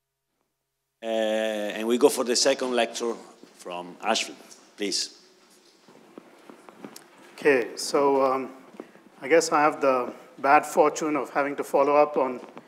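A man lectures through a microphone in a large echoing hall.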